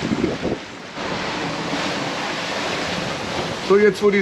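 Waves rush and splash against a boat's hull.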